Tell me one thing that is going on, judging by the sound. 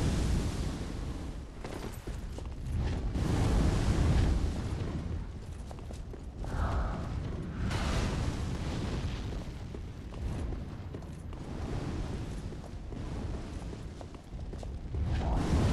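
A fire roars in bursts.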